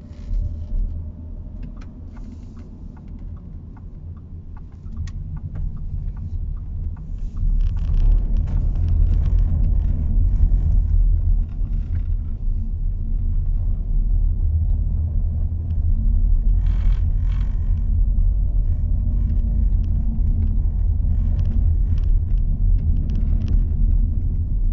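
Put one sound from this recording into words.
A car engine hums and road noise rumbles steadily inside a moving car, growing louder as it picks up speed.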